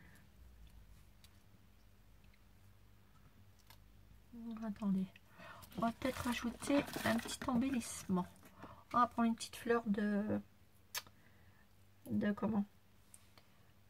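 Paper crinkles softly as it is handled.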